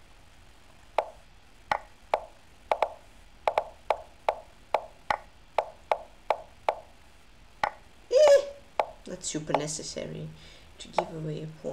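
Short sharp clicks sound in quick succession as chess moves are made.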